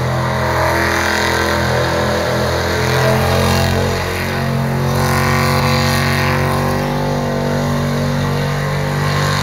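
A car engine roars loudly, revving high and steady.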